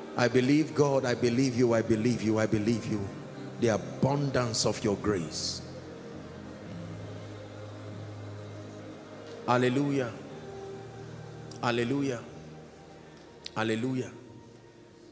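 A man preaches loudly and with passion through a microphone in a large echoing hall.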